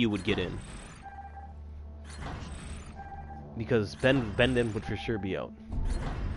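Short electronic chimes ring as game menu items change.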